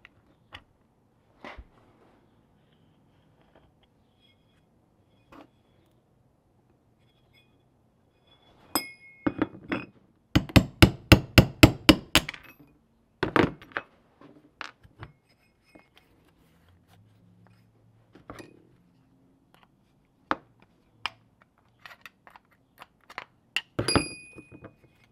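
Metal parts clink and knock together as they are handled.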